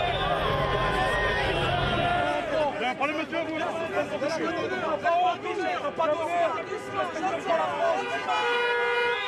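A crowd of men shout and argue loudly outdoors.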